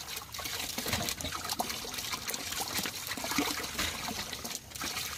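Vegetable pieces splash and knock in water as hands handle them.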